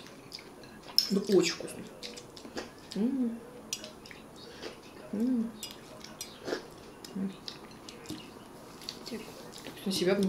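A woman slurps loudly from a plate, close by.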